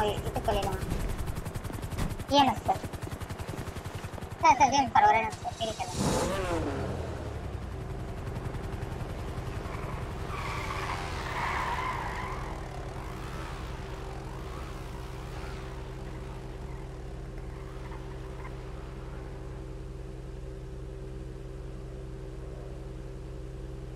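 A sports car engine idles with a low, steady hum.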